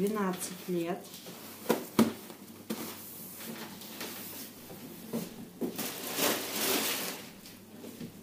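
Padded fabric rustles as a jacket is folded.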